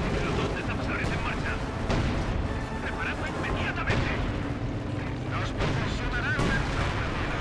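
Gunfire and explosions crack and boom in short bursts.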